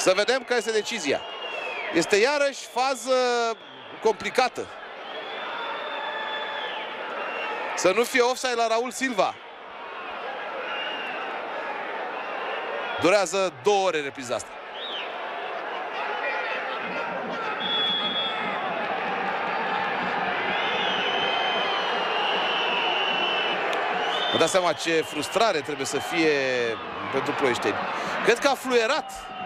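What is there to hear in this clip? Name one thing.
A large crowd of fans chants and cheers in a stadium.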